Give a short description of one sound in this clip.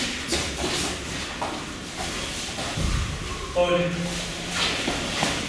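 Bare feet thud and shuffle on a padded floor.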